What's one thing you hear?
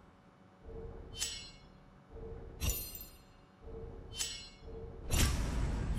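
Short bright chimes ring out one after another.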